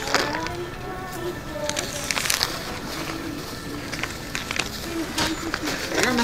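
Paper bills rustle as they are counted.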